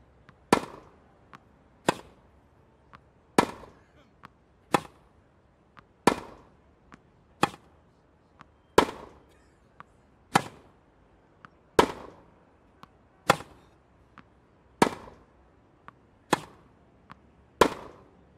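Tennis rackets strike a ball back and forth in a steady rally.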